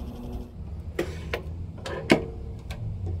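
An oven door clicks open and shut.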